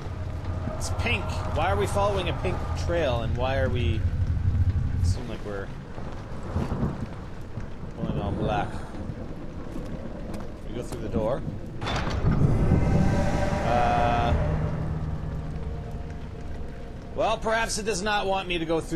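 A young man talks with animation through a close microphone.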